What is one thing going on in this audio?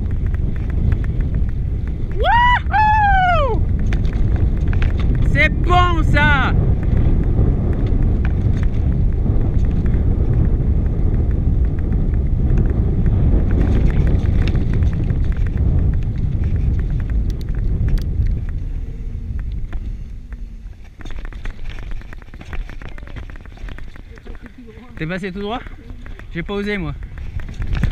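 A bicycle rattles over bumps.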